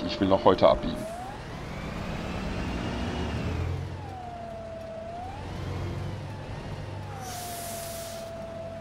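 A bus engine hums steadily while driving, its whine rising and falling.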